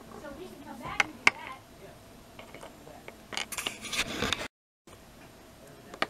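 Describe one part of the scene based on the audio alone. Small plastic toy figures tap and knock against each other.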